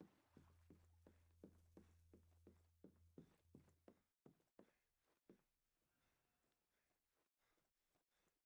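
Footsteps thud quickly on wooden stairs and floorboards.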